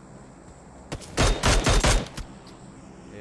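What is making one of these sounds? A rifle fires a quick burst of loud shots.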